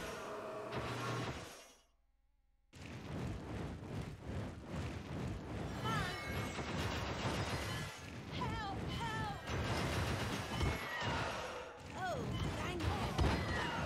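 Magic blasts zap and whoosh.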